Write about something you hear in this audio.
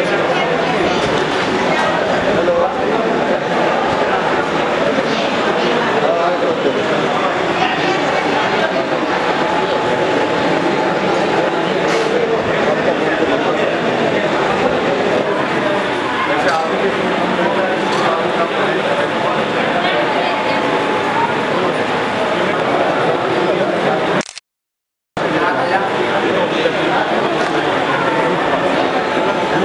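A crowd of men talks loudly all at once, close by.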